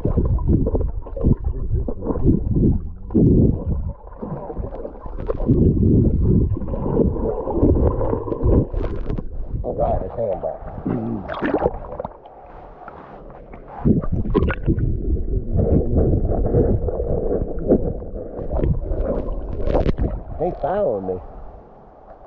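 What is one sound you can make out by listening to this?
Water churns and gurgles loudly, heard from just under the surface.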